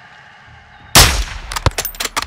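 A rifle fires a single loud shot close by.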